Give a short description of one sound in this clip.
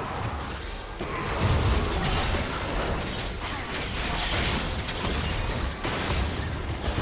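Magic spells burst and whoosh in a noisy fight.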